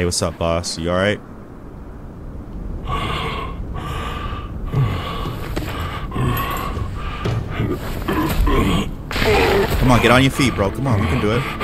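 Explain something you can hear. A man speaks slowly in a deep, gruff voice.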